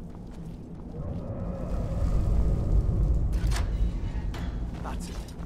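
A heavy iron gate rumbles and grinds open.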